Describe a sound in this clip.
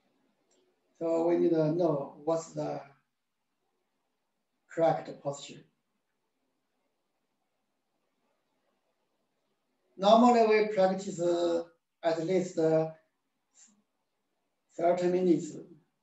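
A man speaks calmly in short phrases through a microphone.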